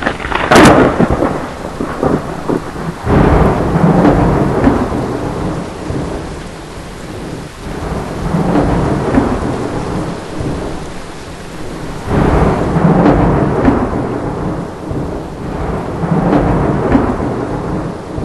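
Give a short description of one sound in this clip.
Thunder rumbles and cracks in repeated deep rolls.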